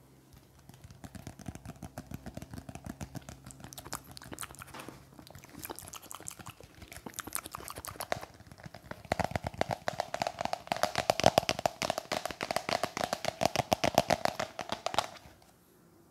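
A plastic shaker bottle rattles as it is shaken quickly.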